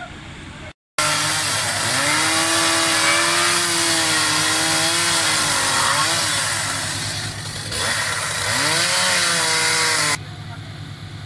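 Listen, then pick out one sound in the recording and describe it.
A chainsaw revs, cutting through wooden boards.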